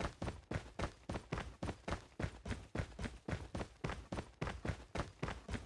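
Running footsteps thud in a quick, even rhythm.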